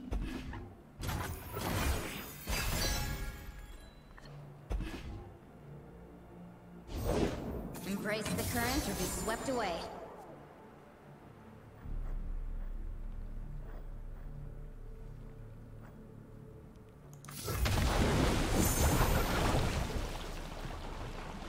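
Electronic game effects whoosh and chime.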